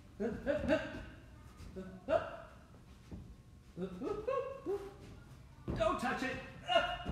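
Hands pat softly on a gym mat.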